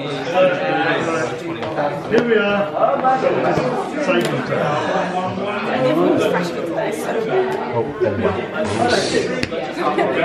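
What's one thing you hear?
Cards are slid and tapped on a table.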